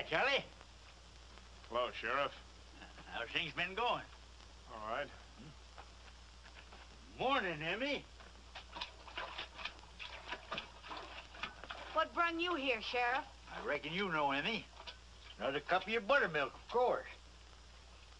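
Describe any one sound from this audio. An elderly man speaks in a gruff, animated voice.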